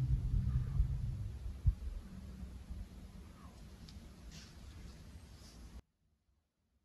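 Several electric fans whir and hum steadily.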